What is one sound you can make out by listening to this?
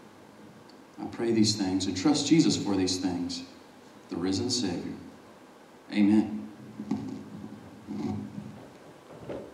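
A man speaks calmly through a microphone in an echoing hall.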